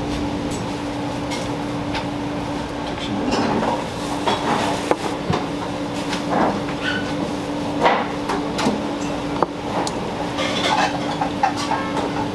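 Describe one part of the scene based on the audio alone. Chopsticks tap and click against a plate.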